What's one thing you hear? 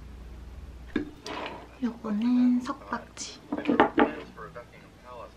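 A ceramic bowl clatters and clinks on a table.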